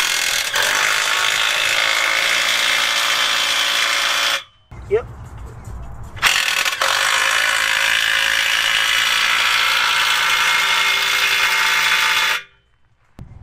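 A power impact wrench whirs loudly in long bursts.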